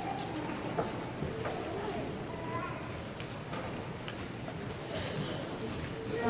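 A concert band plays softly in a large echoing hall.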